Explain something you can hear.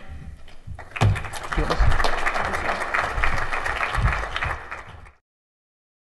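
An audience applauds in a large room.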